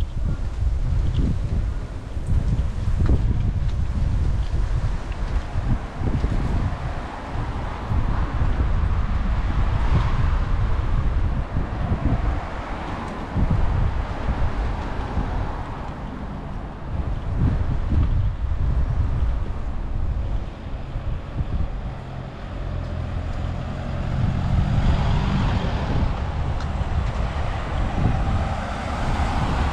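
Footsteps tap steadily on a paved path.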